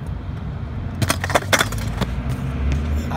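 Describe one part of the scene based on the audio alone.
A kick scooter clatters onto concrete.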